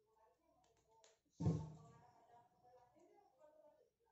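A plastic bottle is set down on a table with a thud.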